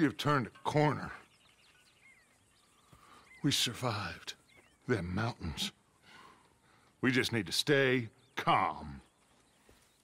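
A man talks calmly in a low voice, close by.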